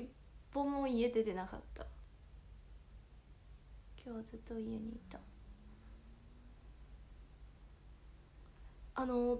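A young woman talks casually and close to a microphone, in short bursts with pauses.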